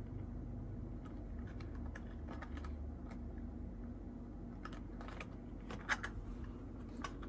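Cardboard packaging crinkles and taps as fingers handle it.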